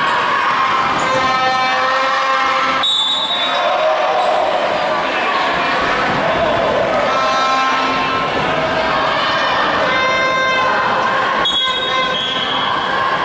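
Basketball shoes squeak on a hardwood court.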